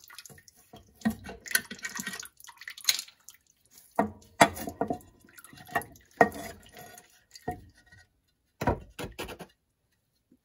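A metal cover clanks and scrapes as it is pried loose.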